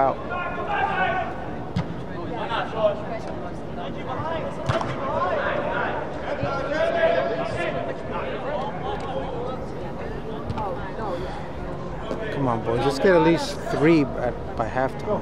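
Young men and women shout and call to one another across a large echoing hall.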